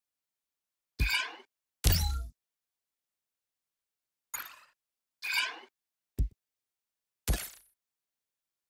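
Short soft interface blips sound now and then.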